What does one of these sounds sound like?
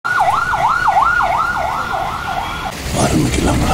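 An ambulance siren wails rapidly up and down close by.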